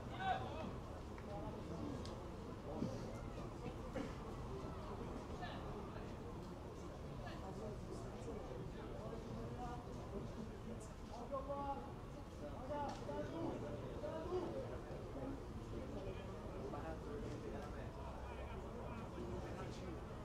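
Young men call out to each other across an open field, heard from a distance.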